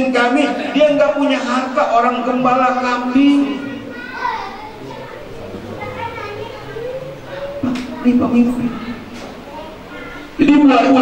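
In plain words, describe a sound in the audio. An elderly man preaches with animation through a microphone.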